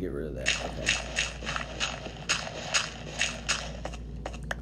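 Dirt crunches in quick, even beats as blocks are dug out.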